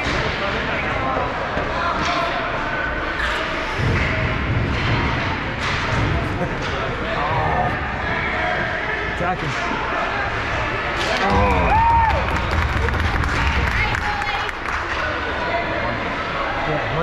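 Ice skates scrape and hiss across a rink.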